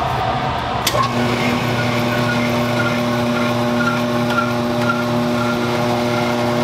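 A noodle machine whirs and rattles as dough feeds through its rollers.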